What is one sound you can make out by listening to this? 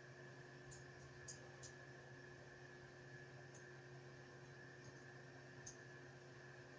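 Small metal tools click and snap.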